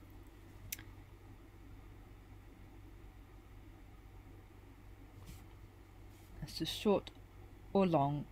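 A paintbrush strokes softly across paper.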